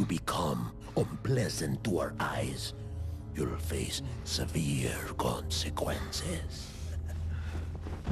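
A deep-voiced older man speaks slowly and menacingly.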